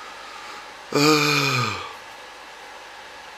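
A middle-aged man coughs into his fist.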